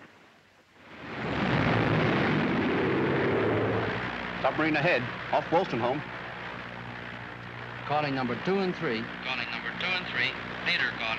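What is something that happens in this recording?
Aircraft engines drone loudly and steadily.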